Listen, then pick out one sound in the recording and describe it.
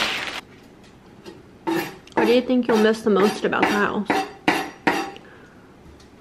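A knife slices through an onion.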